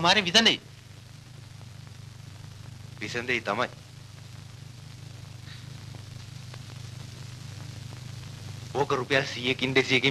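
A man speaks with feeling in short bursts.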